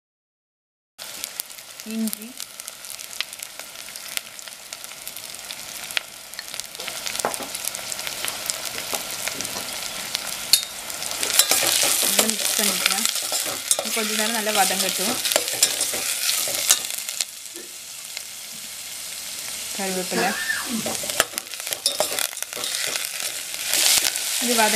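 Food sizzles and crackles in hot oil.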